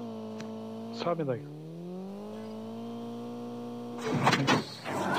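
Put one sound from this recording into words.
A car engine hums and revs up.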